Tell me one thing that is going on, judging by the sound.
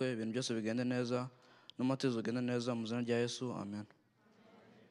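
A young man speaks loudly through a microphone in a large hall.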